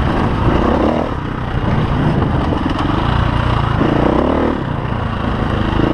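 A dirt bike engine revs loudly up close, rising and falling as it rides.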